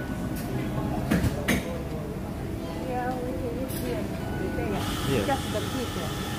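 A middle-aged woman speaks close by.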